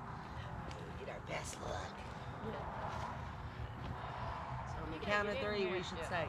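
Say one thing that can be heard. A man and a woman talk and laugh nearby outdoors.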